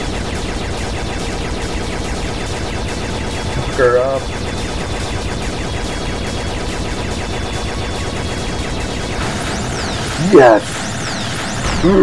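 Rapid electronic gunfire rattles steadily.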